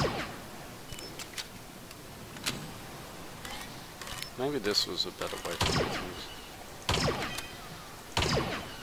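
Laser rifle shots fire with sharp, zapping bursts.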